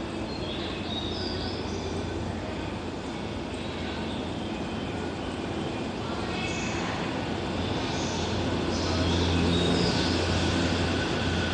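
A train's motor hums as it pulls slowly out of an echoing underground station and gets louder.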